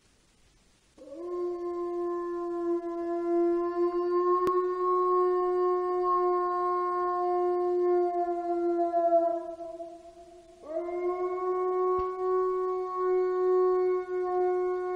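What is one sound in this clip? A wolf howls in long, steady, drawn-out calls.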